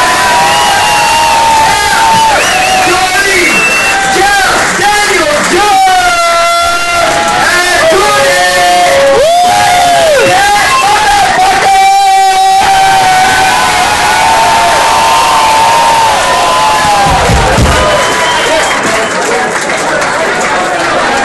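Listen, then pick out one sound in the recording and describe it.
A live band plays loud, distorted rock music close by through loudspeakers.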